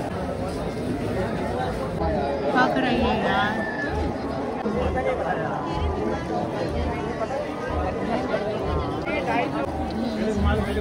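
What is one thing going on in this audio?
A crowd of men murmurs and talks nearby.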